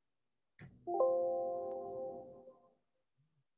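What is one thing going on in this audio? A short computer alert chime sounds.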